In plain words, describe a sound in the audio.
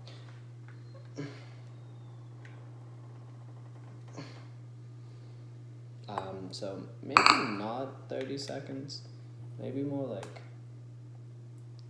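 A spoon clinks and scrapes in a bowl.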